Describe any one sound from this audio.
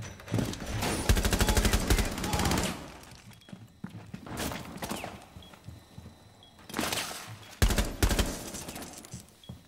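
A carbine fires in rapid bursts.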